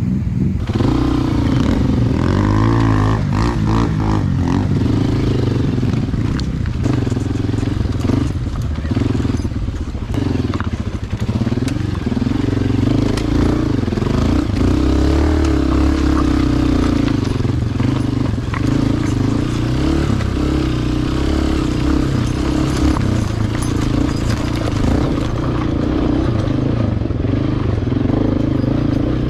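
A dirt bike engine drones and revs up and down close by.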